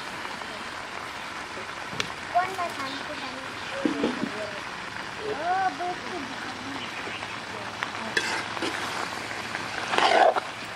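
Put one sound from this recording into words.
Vegetables sizzle softly in a hot wok.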